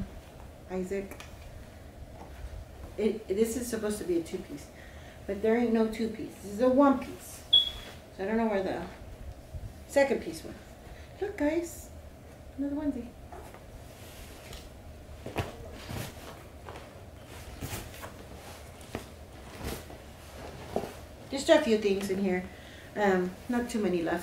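Clothes and cardboard rustle as a woman rummages in a box.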